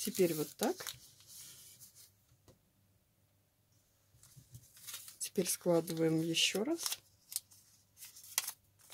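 Paper crinkles and rustles as it is folded by hand.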